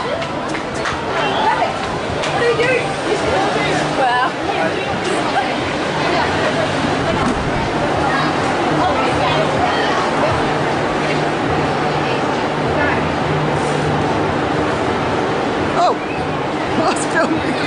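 Young girls chatter and laugh nearby.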